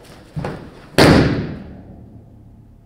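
A body slams hard onto a mat and the thud fades.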